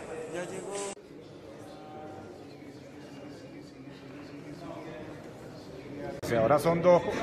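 A man speaks into a microphone in an echoing hall.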